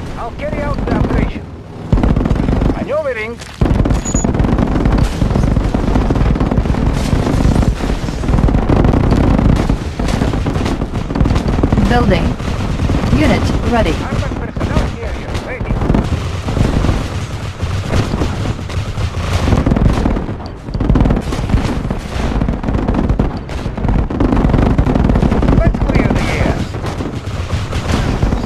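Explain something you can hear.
Flak shells burst in a string of explosions.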